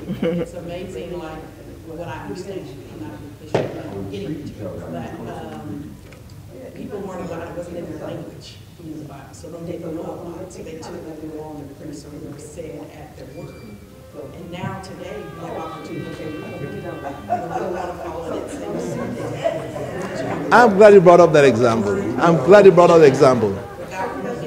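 An elderly man speaks calmly through a microphone in an echoing room, growing louder and more animated toward the end.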